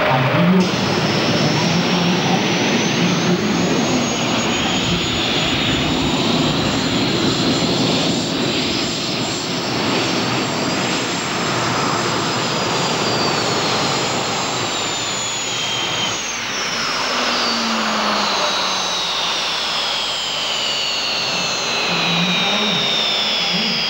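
A pulling tractor's engines roar loudly at full power.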